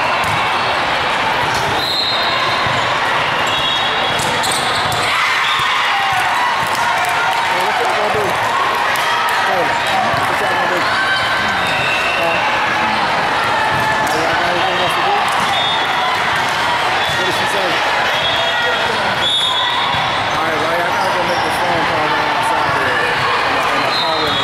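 A crowd of voices chatters and echoes through a large hall.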